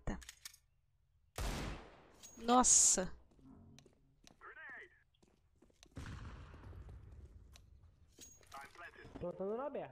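A young woman talks through a headset microphone.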